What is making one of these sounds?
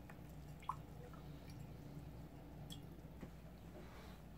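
A sponge is dropped into a glass jar with a soft tap.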